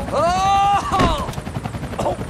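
A body hits the ground with a heavy thud.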